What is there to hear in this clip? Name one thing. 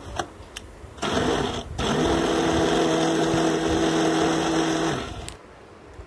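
A blender motor whirs loudly.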